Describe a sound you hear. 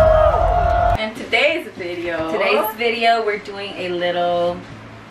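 A young woman speaks cheerfully and close up.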